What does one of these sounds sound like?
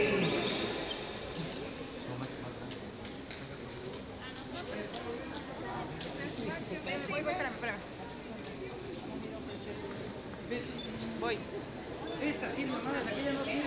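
Several people talk nearby at a moderate volume.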